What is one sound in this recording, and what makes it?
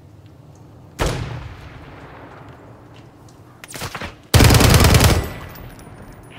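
Gunfire bursts loudly in a game.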